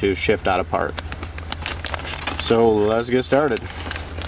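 A plastic bag crinkles as it is handled.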